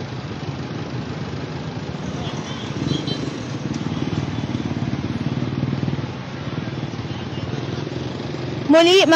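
Engines of cars and trucks rumble steadily in passing street traffic.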